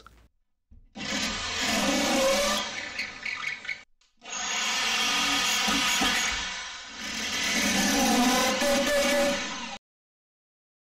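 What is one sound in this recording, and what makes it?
An electric drill whirs steadily as it bores into wood.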